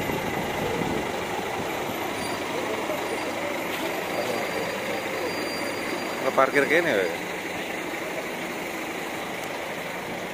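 A bus engine rumbles as the bus rolls slowly closer.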